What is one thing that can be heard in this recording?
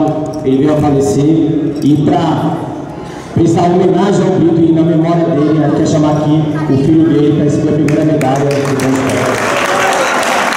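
A young man speaks loudly into a microphone through loudspeakers in a large echoing hall.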